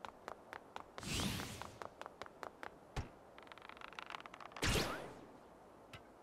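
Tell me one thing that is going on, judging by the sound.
A loud whoosh sweeps past.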